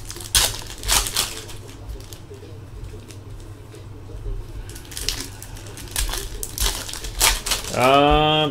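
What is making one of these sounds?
Plastic wrappers rustle and crinkle as cards are handled close by.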